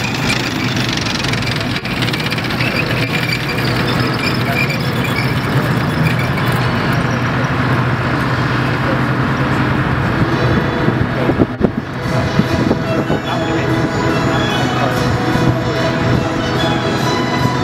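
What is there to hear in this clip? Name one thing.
Heavy tracked vehicle engines rumble and roar nearby.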